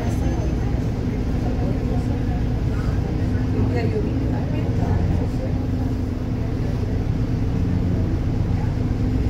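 A car engine rumbles low and steady nearby.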